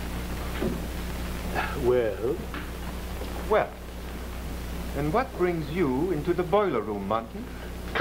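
An elderly man speaks gravely.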